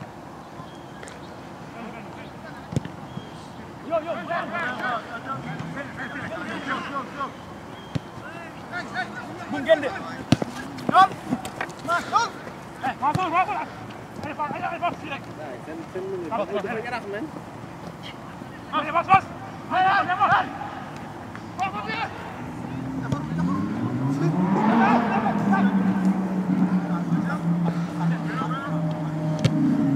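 A soccer ball thuds off a kick.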